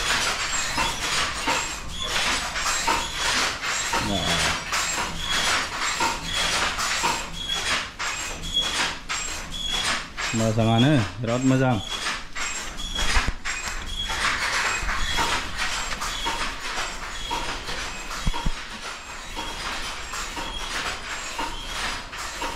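Looms clatter rhythmically, with steady repeated knocks.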